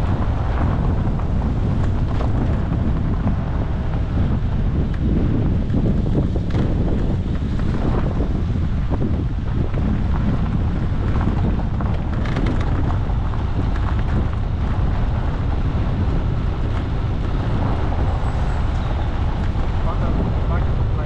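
A vehicle engine hums low and steady as it drives.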